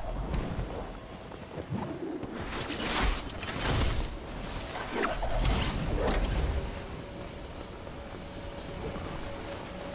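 Wind rushes past during a fast glide.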